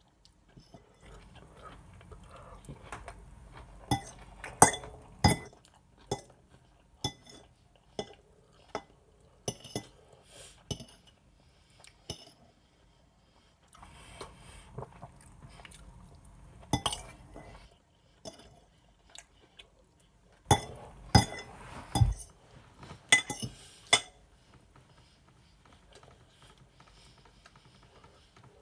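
A man chews food loudly, close up.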